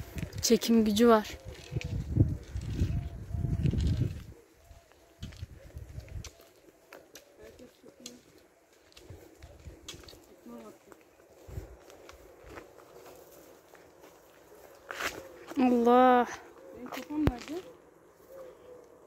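Footsteps scuff along a paved road outdoors.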